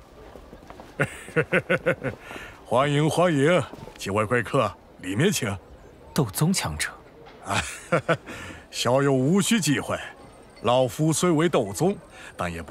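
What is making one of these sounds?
An elderly man speaks warmly and calmly, close by.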